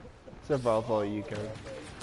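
A laser sword hums and swings.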